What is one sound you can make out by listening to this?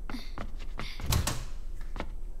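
A door opens with a click.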